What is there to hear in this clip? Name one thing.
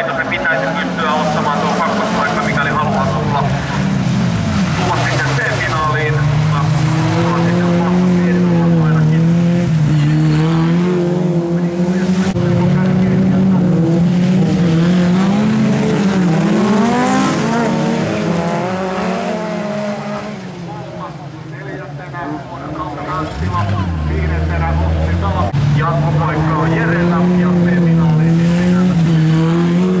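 Several racing car engines roar and rev loudly, rising and falling in pitch.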